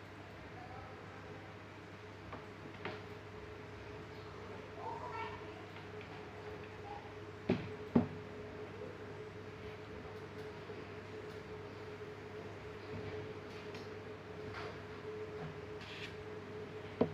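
An electric fan hums steadily nearby.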